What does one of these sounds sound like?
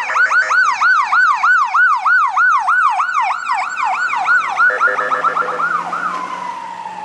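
An ambulance siren yelps rapidly close by.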